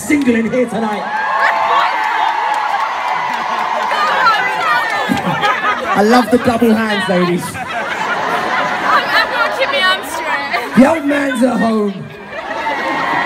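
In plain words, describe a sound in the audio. A man sings through loudspeakers at a loud concert.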